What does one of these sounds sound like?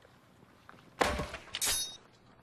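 A man shouts commandingly outdoors.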